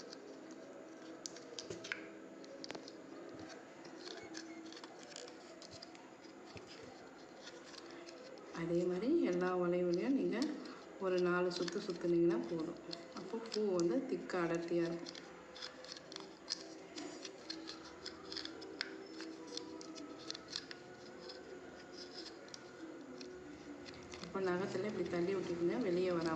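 Fingers click and tap against a small plastic loom.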